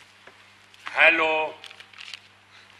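An elderly man speaks loudly into a telephone.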